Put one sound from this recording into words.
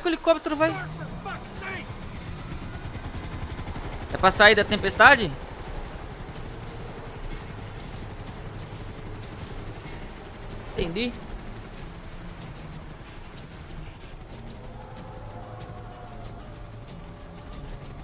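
A helicopter engine drones with whirring rotor blades.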